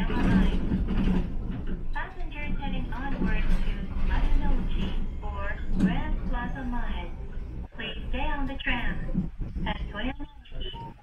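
A man announces calmly through a loudspeaker.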